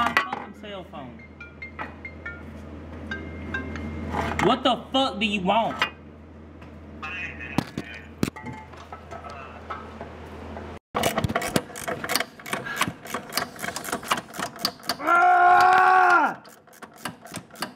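Metal parts clink and knock.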